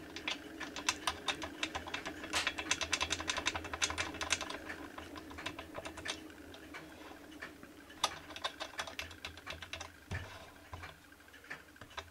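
Small metal parts click and scrape together as pliers work a metal pin.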